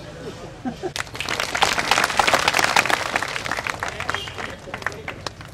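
A crowd applauds loudly outdoors.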